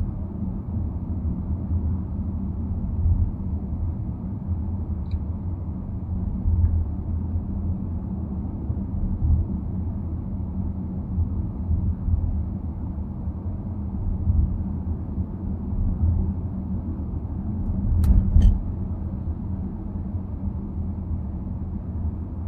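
A car engine hums steadily and tyres rumble on the road from inside a moving car.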